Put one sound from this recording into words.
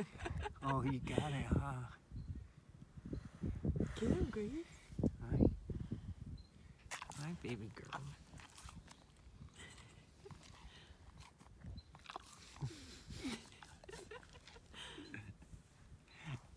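A young man laughs and talks warmly close by.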